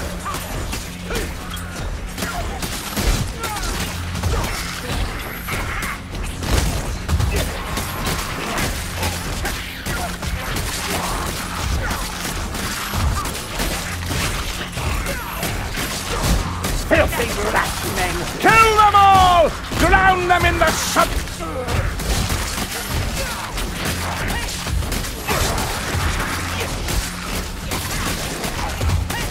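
Weapons hack and slash into flesh in quick, heavy blows.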